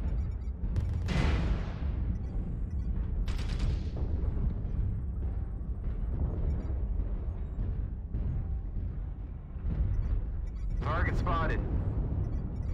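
Weapons fire in sharp zapping bursts.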